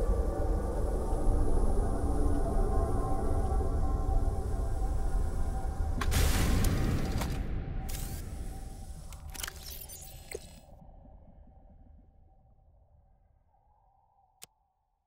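Deep water rumbles and swirls all around, then slowly fades away.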